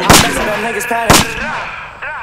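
A gun fires two loud, close shots.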